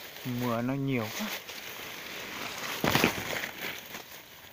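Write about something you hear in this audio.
Leaves rustle as they brush past close by.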